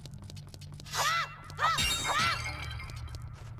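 A bright chime rings as a gem is picked up.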